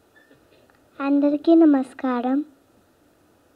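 A young girl speaks into a microphone in a clear, high voice.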